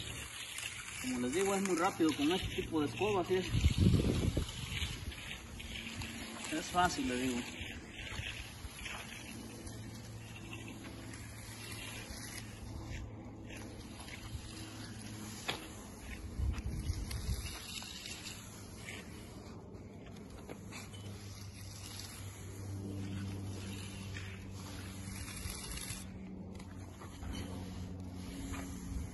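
A broom brushes softly across wet concrete.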